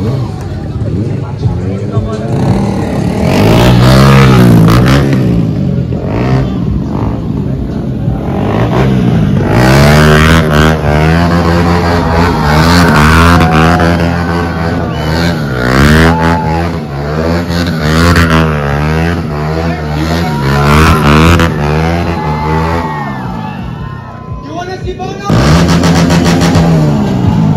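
A motorcycle engine revs hard, rising and falling over and over.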